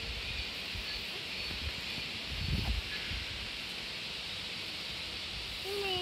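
A sheep tears grass with its teeth.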